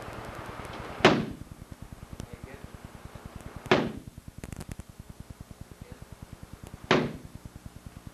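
A stick strikes a padded shield with loud, sharp thwacks.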